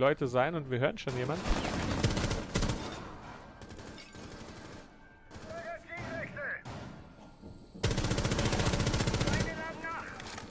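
A rifle fires rapid bursts of gunshots at close range.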